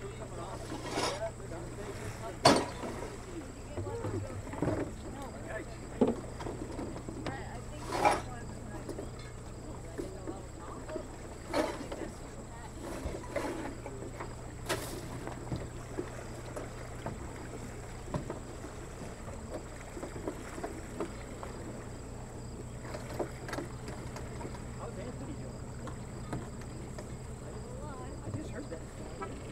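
Calm water laps softly.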